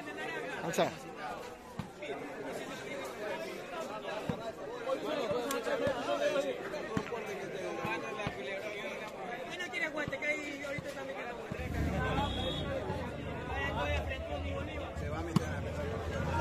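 A ball is struck with a thud.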